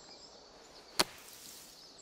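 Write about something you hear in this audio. A golf club strikes a ball out of sand.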